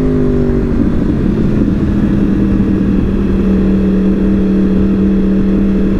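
A motorcycle engine hums steadily up close, with its pitch shifting slightly.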